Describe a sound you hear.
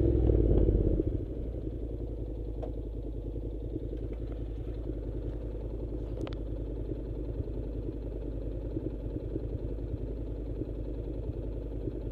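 A motorcycle engine idles low and steady.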